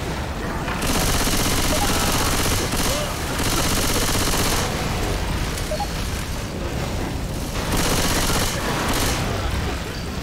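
Gunfire rattles in fast bursts.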